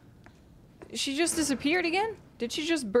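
A young woman speaks quietly into a close microphone.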